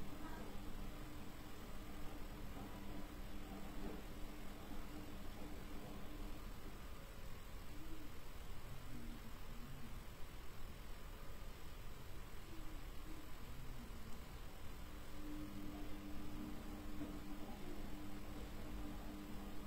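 A woman hums softly in long, steady tones close by.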